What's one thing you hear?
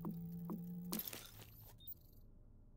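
A game's whooshing chime marks the end of crafting.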